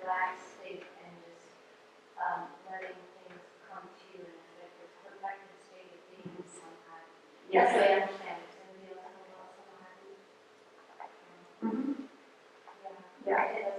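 A woman speaks calmly and clearly, with pauses.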